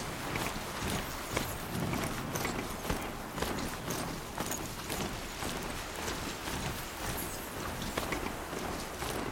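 Heavy mechanical hooves clatter steadily at a gallop.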